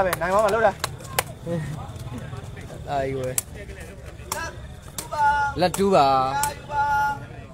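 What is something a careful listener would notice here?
A ball is kicked with sharp slaps.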